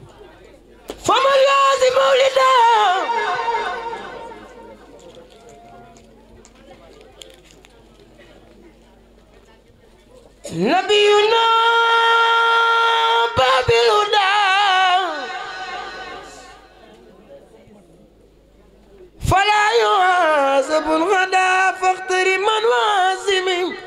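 A man sings loudly through a microphone and loudspeakers, in long held phrases.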